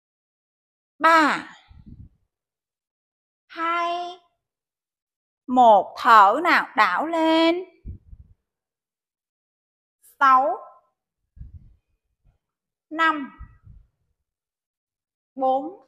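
A young woman calls out instructions through a microphone, in short bursts.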